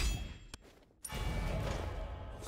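A bright chime rings out as a game character levels up.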